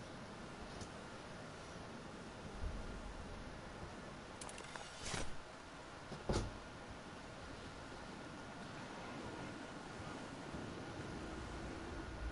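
Wind rushes steadily past a gliding game character.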